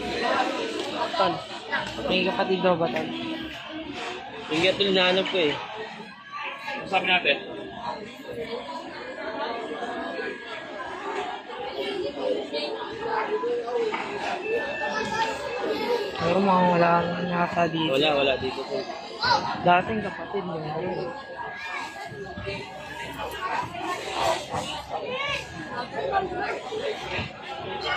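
A crowd of men, women and children talk and shout excitedly nearby, outdoors.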